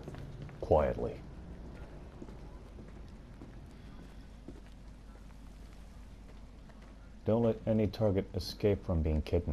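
Hurried footsteps patter on stone steps.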